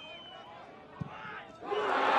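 A ball is struck hard with a thud.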